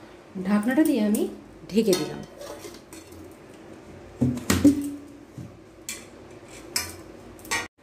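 A metal lid clinks onto a steel bowl.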